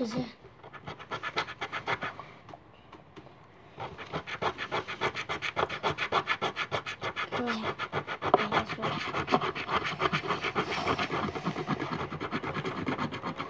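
Hands tap and scrape rapidly on a table close by.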